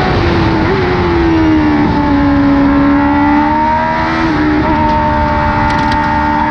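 A racing car engine roars loudly up close, its pitch rising and dropping as gears shift.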